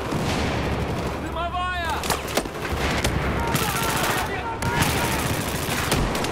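Automatic rifles fire in rapid bursts nearby.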